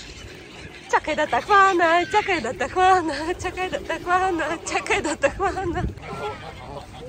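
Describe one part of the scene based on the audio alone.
Geese honk loudly close by.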